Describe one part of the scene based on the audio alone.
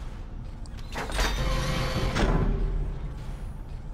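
A heavy metal door slides shut with a hiss.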